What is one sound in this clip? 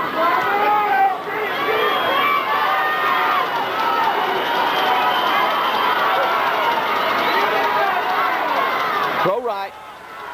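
A large crowd cheers and shouts loudly outdoors.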